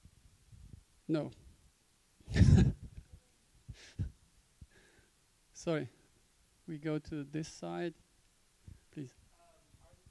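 A man speaks with animation into a microphone in a large echoing room.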